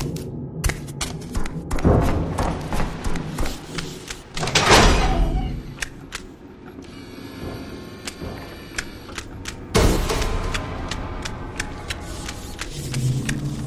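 Quick footsteps thud on stairs and a hard floor.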